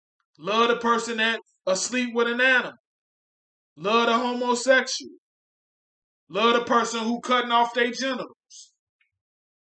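A man speaks calmly and close to a microphone, in short bursts.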